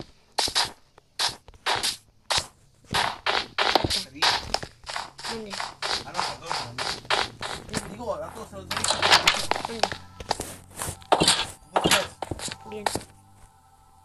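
A young man talks with animation into a microphone, close up.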